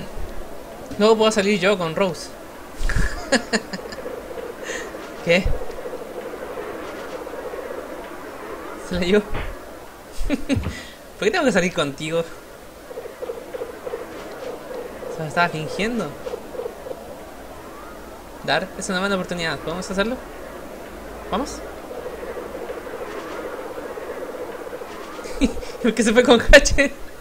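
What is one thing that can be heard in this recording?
A young man talks casually and laughs into a close microphone.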